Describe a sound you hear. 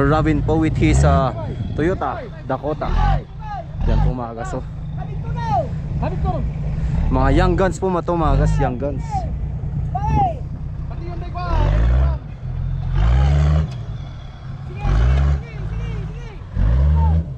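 An off-road engine rumbles and revs hard in bursts.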